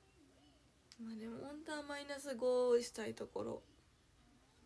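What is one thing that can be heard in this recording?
A young woman speaks close by, in a soft, animated voice.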